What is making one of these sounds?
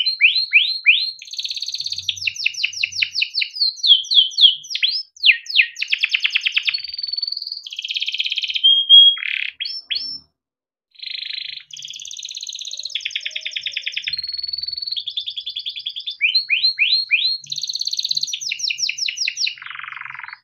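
A canary sings close by in fast, varied trills, chirps and whistles.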